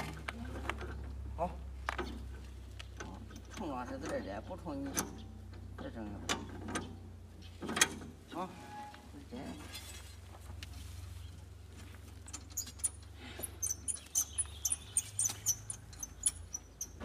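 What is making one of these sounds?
Metal clanks and knocks as a man works on farm machinery.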